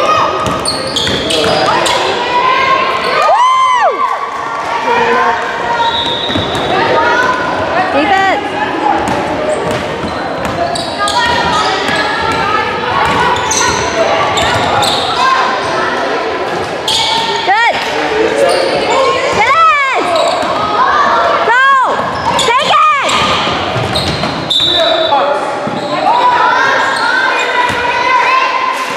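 Young women and adult spectators call out and chatter in an echoing gym.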